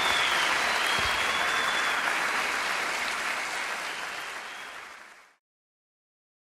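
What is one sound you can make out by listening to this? An audience applauds in a large hall, then the sound fades away.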